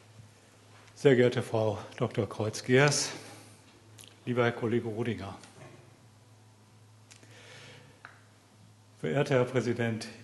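A man speaks through a microphone and loudspeakers in a large hall, in short phrases with pauses.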